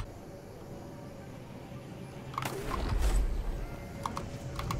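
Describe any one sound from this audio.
A glider whooshes through the air.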